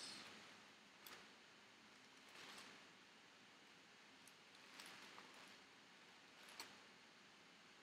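Book pages rustle and flap as they are turned quickly.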